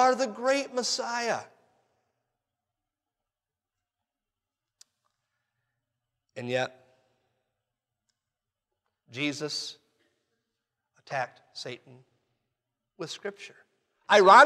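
A man speaks with animation into a microphone, in short bursts with long pauses.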